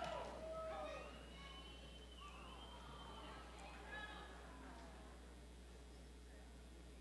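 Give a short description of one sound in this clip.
People applaud in a large echoing hall.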